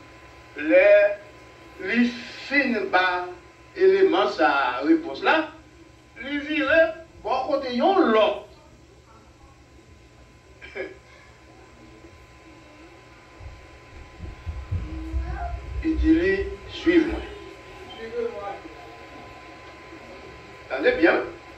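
An elderly man preaches with emphasis into a microphone.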